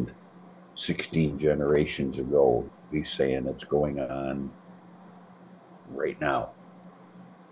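An elderly man speaks with animation over an online call.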